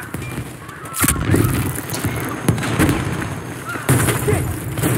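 Loud gunshots crack and boom.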